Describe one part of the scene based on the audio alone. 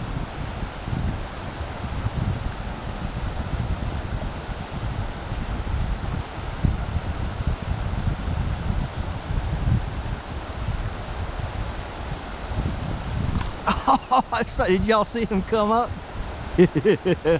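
A shallow stream babbles and ripples over rocks.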